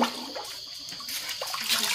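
Water sloshes as hands stir in a large pot.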